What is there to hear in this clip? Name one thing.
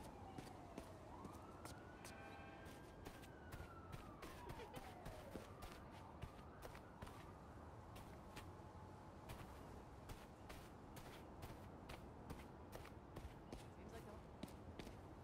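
Footsteps patter quickly across grass.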